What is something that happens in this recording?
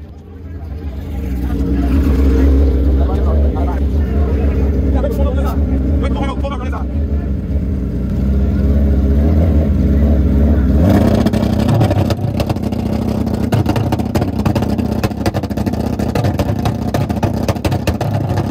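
A racing motorcycle engine revs hard and roars loudly.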